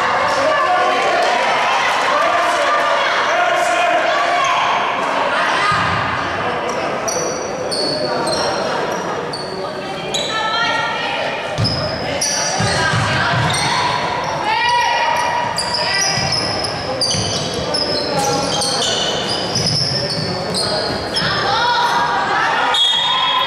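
Players and spectators call out and shout in a large echoing hall.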